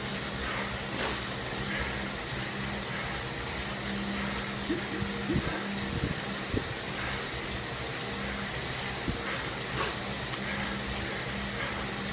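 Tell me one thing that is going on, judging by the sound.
An indoor bike trainer whirs steadily as a man pedals.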